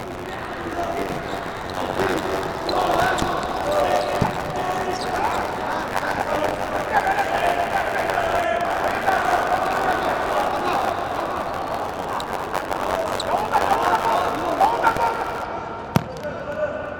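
A ball is kicked hard on an indoor court.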